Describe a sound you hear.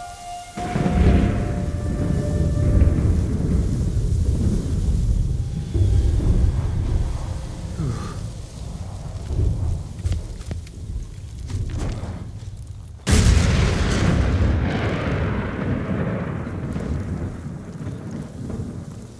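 Strong wind gusts roar through tall grass.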